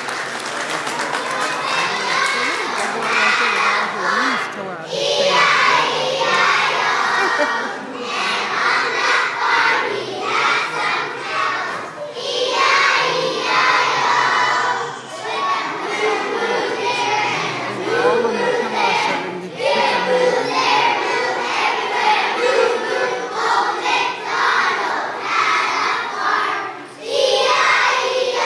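A large choir of young children sings loudly together in an echoing hall.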